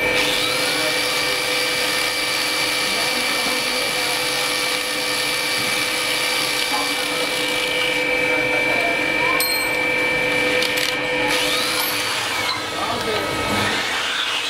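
An electric grinder whines steadily.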